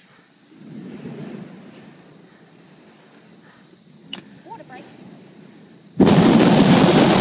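A volcanic eruption rumbles deeply and roars louder toward the end.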